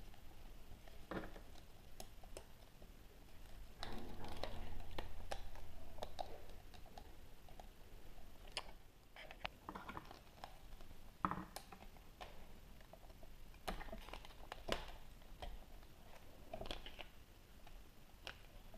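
Small plastic toy parts click and tap as they are handled.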